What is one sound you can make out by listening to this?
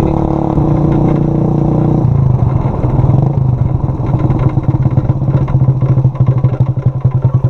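A motorcycle engine hums and pulses steadily up close.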